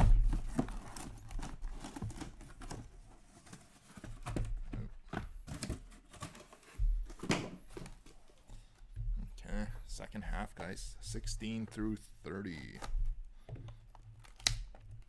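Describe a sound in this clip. Cardboard boxes knock and scrape as they are handled and stacked.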